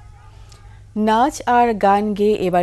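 A woman speaks clearly and calmly into a microphone, reading out.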